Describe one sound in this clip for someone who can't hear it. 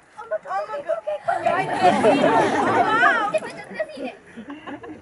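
A crowd of children shouts and laughs loudly.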